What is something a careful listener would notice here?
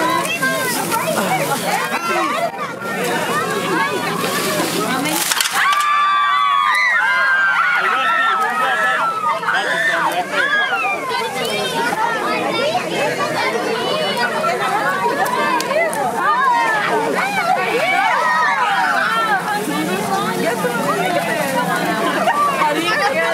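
A crowd of children and adults chatter and shout excitedly close by.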